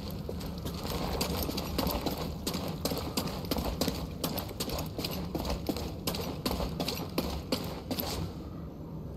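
Footsteps patter quickly over stone.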